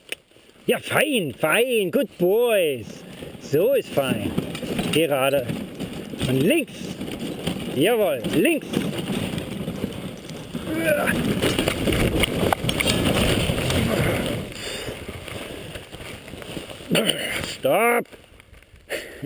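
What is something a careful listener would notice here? Sled dogs yelp and howl with excitement.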